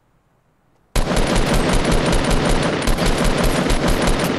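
Rapid gunfire rattles in a game.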